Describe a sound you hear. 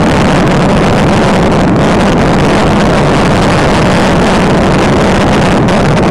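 Wind rushes past a fast-moving car.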